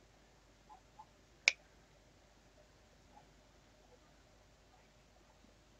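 Plastic parts click and snap as they are handled.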